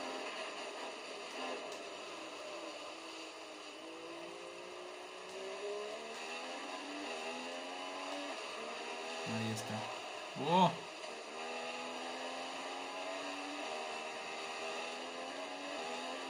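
A racing car engine whines, rising and falling in pitch as it shifts gears.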